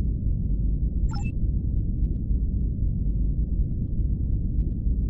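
A low spaceship engine hum drones steadily.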